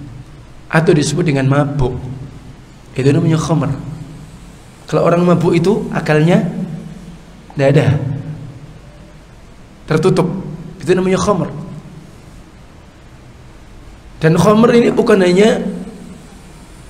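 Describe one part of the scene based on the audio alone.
A middle-aged man speaks with animation into a microphone, in short bursts with pauses.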